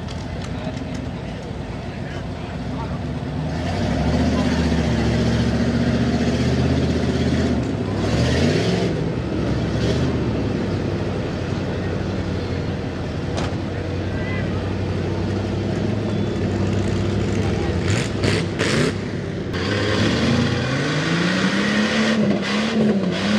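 Truck tyres spin and churn through thick mud.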